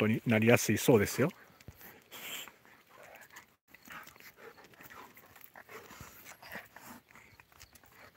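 A dog sniffs at the ground.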